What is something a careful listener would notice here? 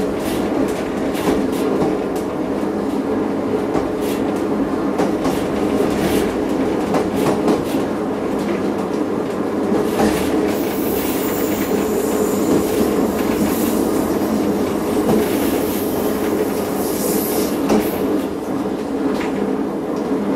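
A train rumbles steadily along the rails.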